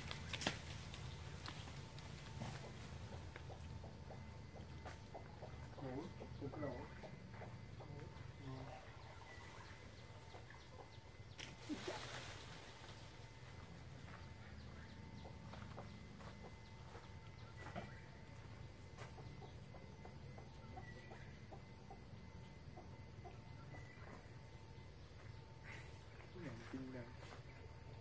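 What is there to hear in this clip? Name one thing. Branches creak and leaves rustle as a gibbon hangs and swings in a tree.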